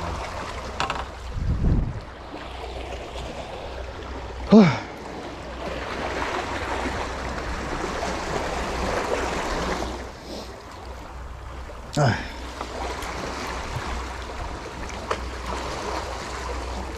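Sea water splashes and sloshes against concrete blocks close by.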